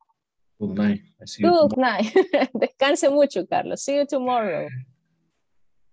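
A man talks cheerfully over an online call.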